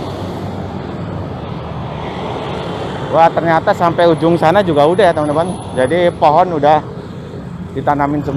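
A motorbike drives past.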